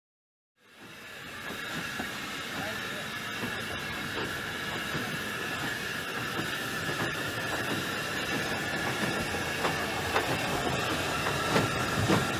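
A steam locomotive hisses steam steadily.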